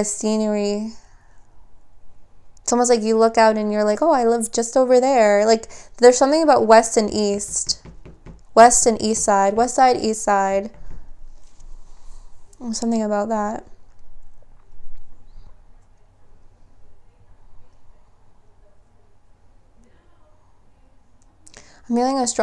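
A young woman talks calmly and close up, with pauses.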